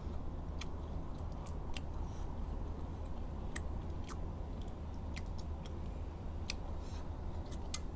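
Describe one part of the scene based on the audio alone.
Crunchy shells crack and snap in short, sharp bursts.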